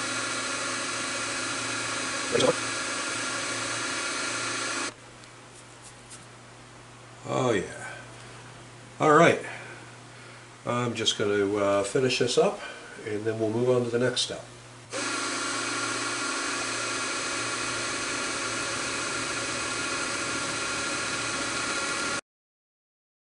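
A milling machine hums steadily.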